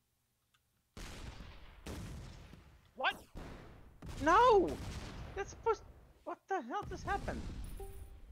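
Video game explosions boom one after another.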